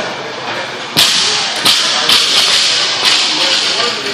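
A barbell crashes down onto the floor in a large echoing hall.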